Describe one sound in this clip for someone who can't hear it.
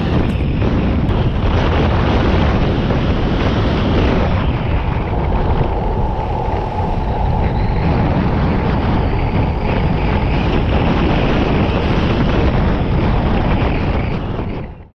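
Wind roars loudly over the microphone.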